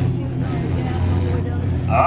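A race car engine roars nearby.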